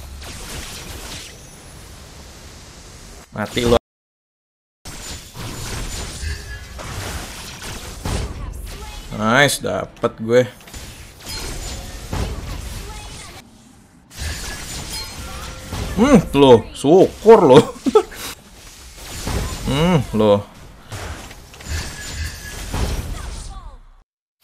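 Game sound effects of spells and hits play.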